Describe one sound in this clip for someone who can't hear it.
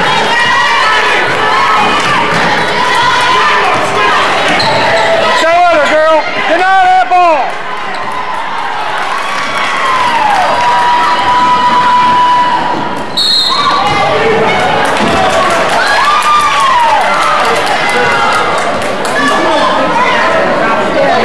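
A crowd murmurs and calls out in an echoing gym.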